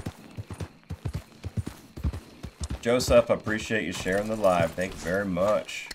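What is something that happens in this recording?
A horse's hooves thud on the ground.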